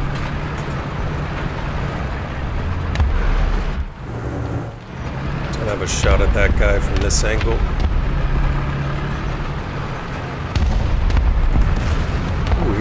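A tank engine rumbles and clanks as the tank drives along.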